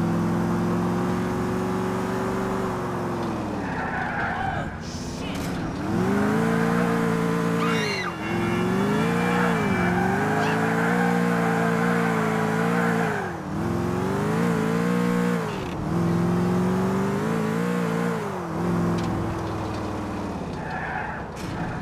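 A car engine revs up and down loudly.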